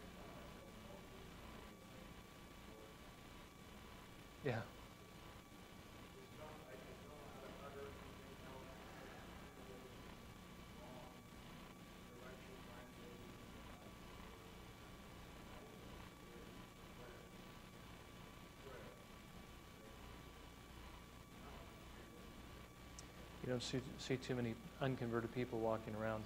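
A middle-aged man speaks calmly into a clip-on microphone.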